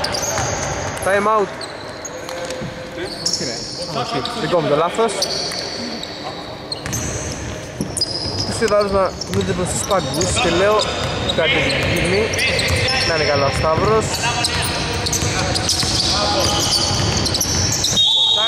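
Men call out to each other across the court.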